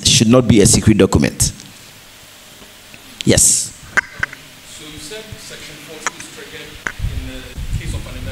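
A man speaks loudly to an audience, close by.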